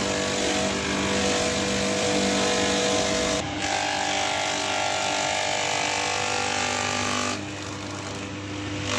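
A motor-driven shredder whirs loudly.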